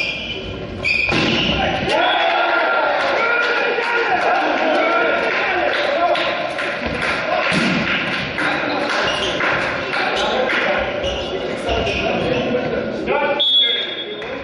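Players shout and cheer loudly in an echoing hall.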